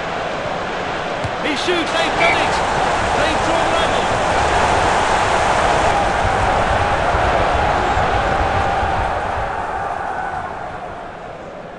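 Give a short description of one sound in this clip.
A large crowd roars and cheers loudly, then dies down.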